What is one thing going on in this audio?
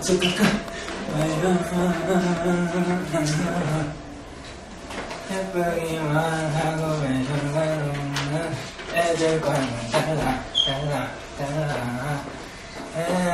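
A young man sings along loudly, close to a microphone.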